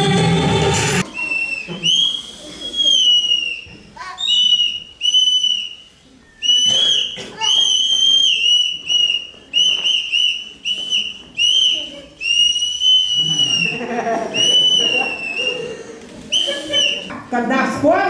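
A whistle-like melody plays through loudspeakers.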